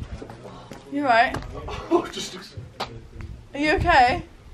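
A man shouts and yelps loudly nearby.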